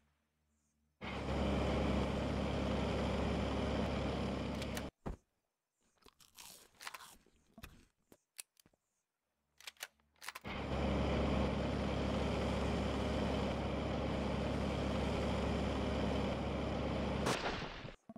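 A digging tool grinds steadily into earth.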